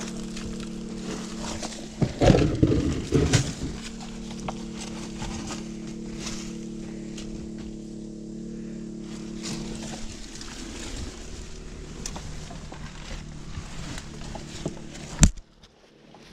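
Boots scrape and scuff against rock.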